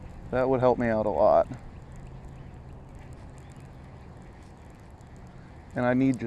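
A fishing reel whirs softly as its handle is cranked.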